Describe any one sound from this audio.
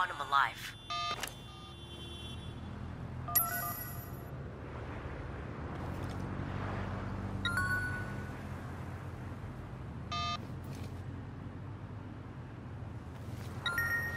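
A phone beeps with short electronic tones.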